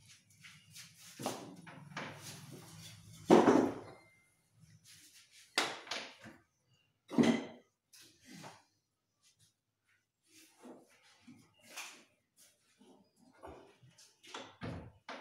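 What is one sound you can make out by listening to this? Wooden boards knock and thud.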